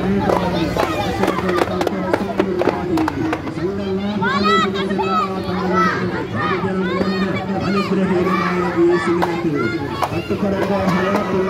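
A crowd of women sings and chants together outdoors.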